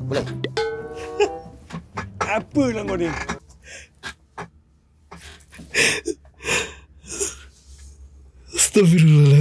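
A man laughs loudly and heartily close to a microphone.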